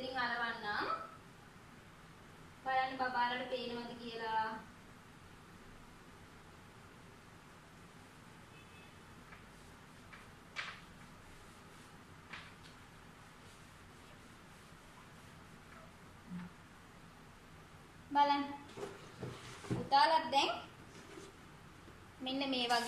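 A young woman speaks calmly and clearly nearby, in short bursts.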